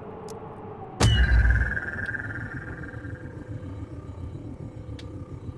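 A deep electronic boom bursts out, followed by a low ringing hum.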